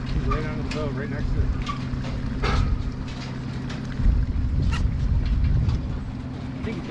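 A boat motor idles with a steady low hum.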